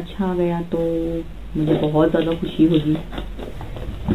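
Scissors snip through cardboard.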